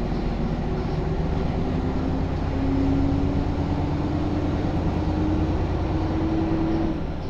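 A bus body rattles and rumbles over the road.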